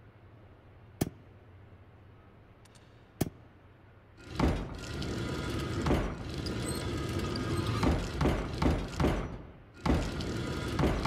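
A heavy mechanism clicks and grinds as a glass panel turns.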